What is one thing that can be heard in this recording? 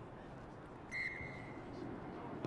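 A referee blows a short, sharp whistle.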